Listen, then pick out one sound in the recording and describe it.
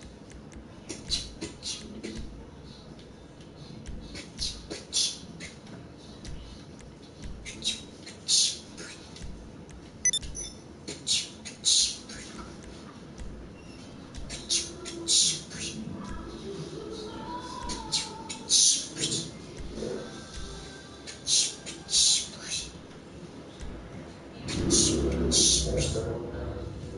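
Short menu clicks and blips sound repeatedly.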